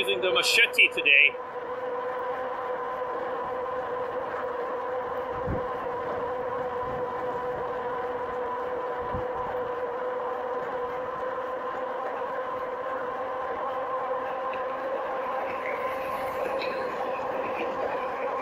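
Wind rushes past a moving rider outdoors.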